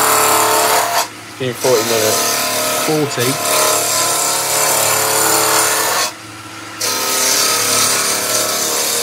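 A wood lathe motor hums steadily.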